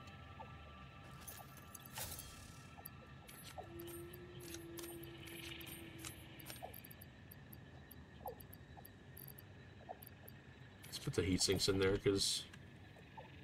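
Soft interface clicks tick now and then.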